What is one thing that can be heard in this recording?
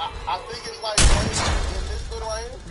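A heavy blow lands with a loud, deep thud.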